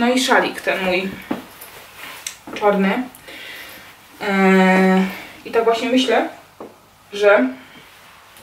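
Fabric rustles as a woman shakes out a large scarf.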